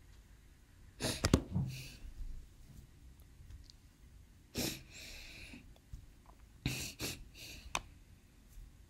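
A young woman sobs and sniffles quietly.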